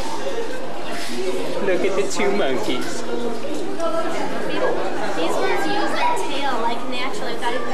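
A small child squeals and babbles excitedly nearby.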